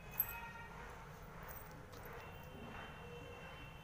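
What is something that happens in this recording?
Metal anklet bells jingle softly as feet shift.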